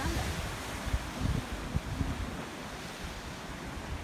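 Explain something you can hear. Waves break and wash against rocks below.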